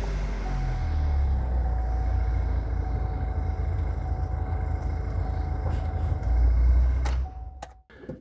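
A car engine idles with a low, steady rumble, then cuts off.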